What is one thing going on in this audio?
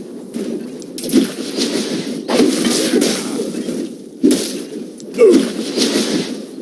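Video game combat effects crackle and whoosh in quick bursts.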